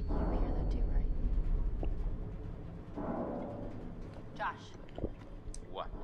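A man gulps a drink from a bottle.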